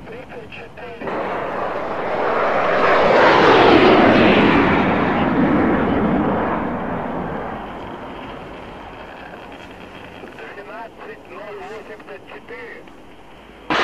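Flares pop and hiss as they burst from a jet.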